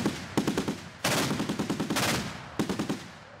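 A heavy gun fires with loud, rumbling blasts.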